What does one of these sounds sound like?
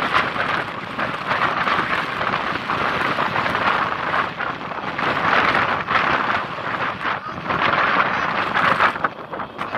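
Wind rushes steadily past outdoors.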